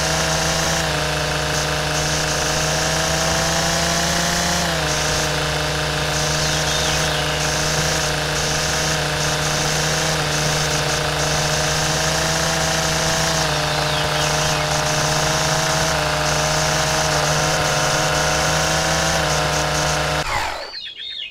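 A string trimmer engine whines steadily, cutting grass.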